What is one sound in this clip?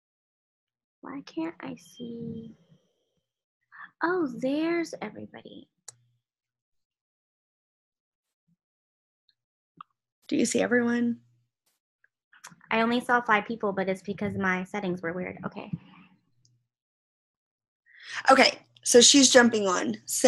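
Young women talk with animation over an online call.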